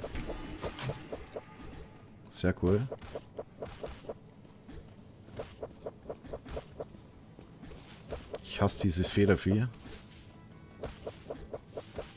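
A blade whooshes through the air in quick slashes.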